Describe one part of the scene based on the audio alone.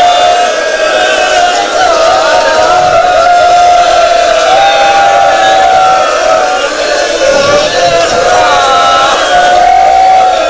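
A crowd of men chants together in a large echoing hall.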